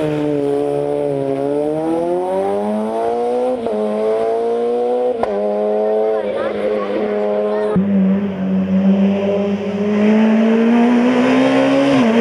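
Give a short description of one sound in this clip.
A rally car's engine revs hard and rises in pitch as it climbs through the gears.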